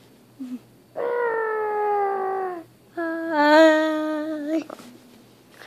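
A young boy sings long, drawn-out notes close by.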